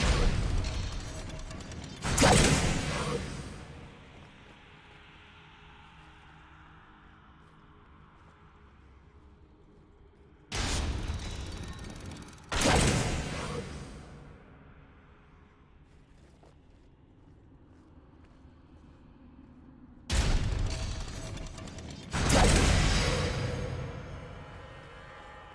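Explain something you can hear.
Magical blasts burst loudly and crackle as they fade.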